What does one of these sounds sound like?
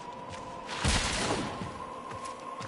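An energy blast crackles and booms.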